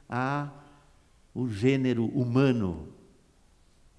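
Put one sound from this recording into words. A middle-aged man speaks with animation into a microphone, heard through a loudspeaker.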